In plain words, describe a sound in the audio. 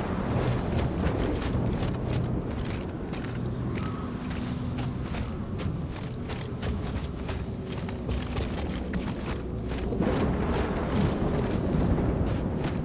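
Wind howls through a blizzard.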